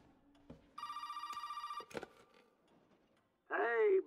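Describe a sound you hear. A handset is picked up with a clatter.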